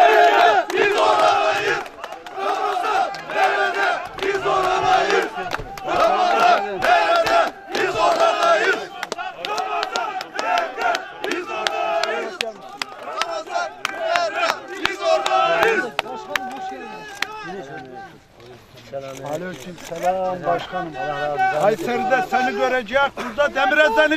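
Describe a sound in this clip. Several men talk and greet one another up close outdoors.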